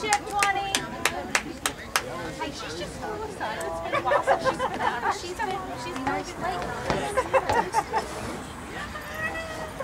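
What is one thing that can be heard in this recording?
Women talk close by.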